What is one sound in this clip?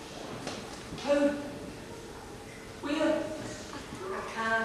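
A young man speaks on a stage in a large hall.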